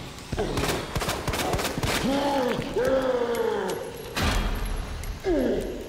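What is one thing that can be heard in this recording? A zombie groans and moans close by.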